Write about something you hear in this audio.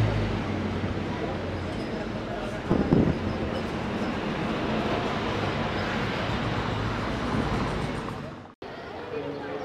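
A bus engine rumbles close by as the bus passes.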